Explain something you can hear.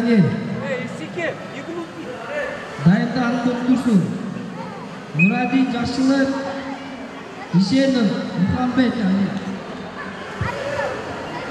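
A man shouts loudly in an echoing hall.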